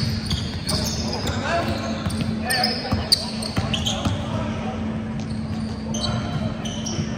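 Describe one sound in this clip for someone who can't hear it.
Sneakers squeak sharply on a polished court.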